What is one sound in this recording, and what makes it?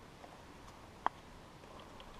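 A golf club taps a ball with a sharp click.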